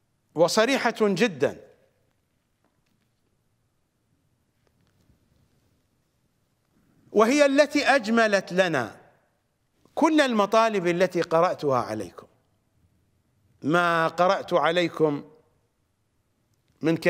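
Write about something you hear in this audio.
A middle-aged man speaks forcefully into a microphone in short bursts with pauses.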